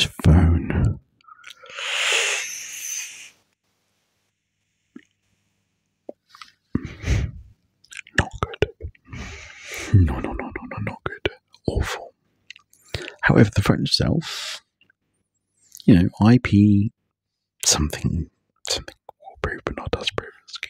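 A man whispers softly and closely into a microphone, with pauses.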